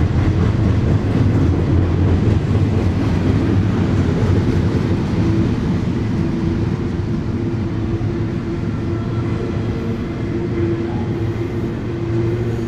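Steel wheels squeal against the rails.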